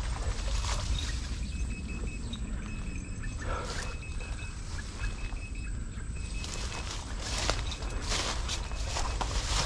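Leaves and stems rustle as someone pushes through dense plants.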